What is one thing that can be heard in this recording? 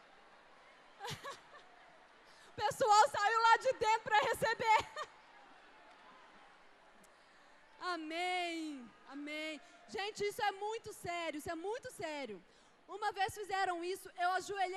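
A young woman speaks with passion through a microphone, heard over loudspeakers.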